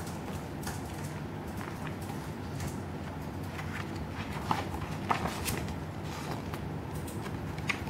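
Paper pages flip and rustle.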